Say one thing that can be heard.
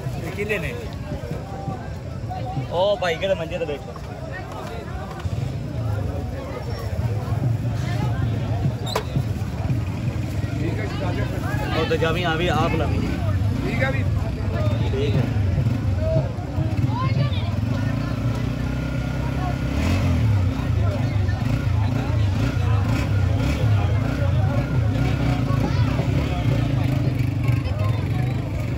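Voices of a busy street crowd murmur in the background.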